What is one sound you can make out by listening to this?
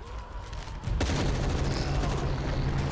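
Gunshots fire in quick succession.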